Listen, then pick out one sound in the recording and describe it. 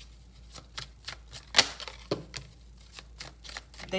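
A card is set down on a table with a soft tap.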